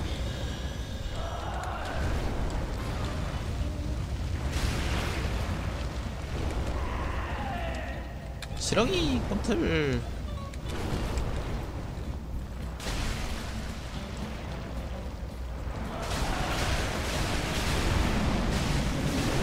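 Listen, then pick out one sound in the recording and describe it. Heavy blows crash and thud.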